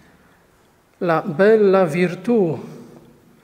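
A man sings out loudly in a large echoing hall.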